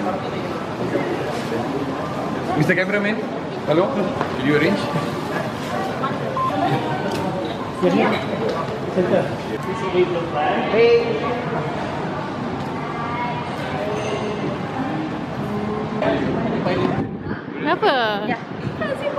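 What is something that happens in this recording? A crowd of men and women chatter and call out nearby in an echoing hall.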